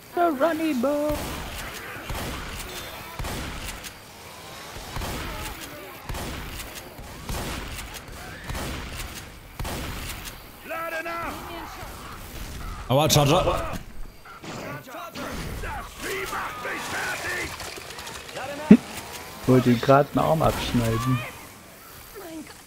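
A shotgun fires in loud blasts.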